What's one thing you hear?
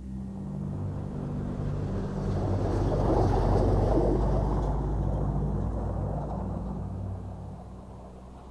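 A car engine hums as the car drives past over snow.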